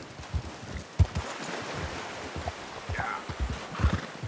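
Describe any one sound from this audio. A horse splashes through a shallow stream.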